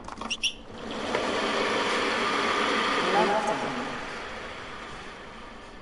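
A crowd cheers and applauds loudly, then fades.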